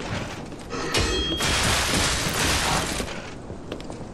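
Sparks and fire crackle and burst during a fight.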